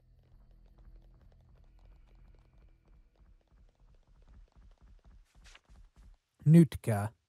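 Quick footsteps run steadily over a hard floor.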